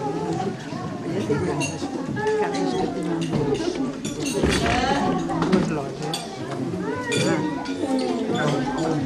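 A crowd of men and women chatter loudly all around in an echoing hall.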